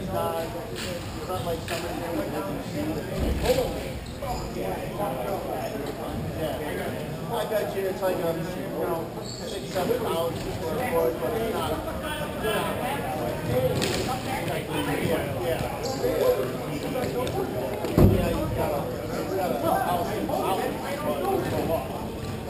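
Skates roll and scrape on a hard floor in a large echoing hall.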